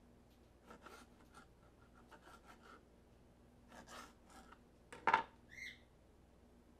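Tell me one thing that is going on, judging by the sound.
A knife taps and clicks against a cutting board.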